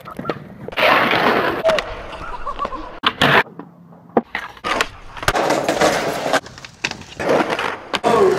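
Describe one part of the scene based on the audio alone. Skateboard wheels roll and rumble over pavement.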